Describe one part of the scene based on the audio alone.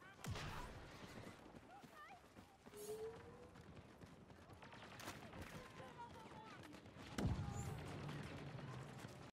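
Boots thud on the ground as a soldier runs.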